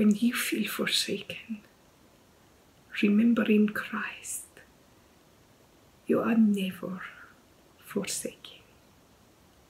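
A middle-aged woman speaks calmly and warmly close to a microphone, in short phrases with pauses.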